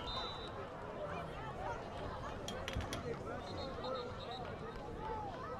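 A crowd of spectators chatters and calls out in the open air.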